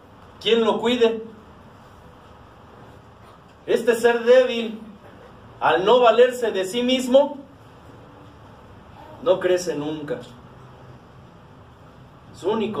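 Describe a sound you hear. A middle-aged man speaks with animation in short bursts with pauses.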